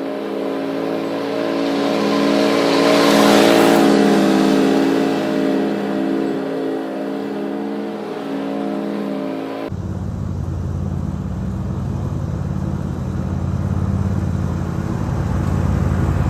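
A riding lawn mower engine drones steadily, loudest as it passes close by.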